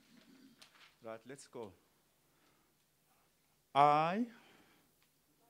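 A man speaks formally into a microphone, reading out.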